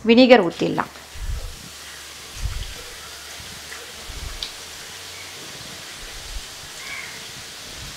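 Water pours steadily into a bowl of metal parts.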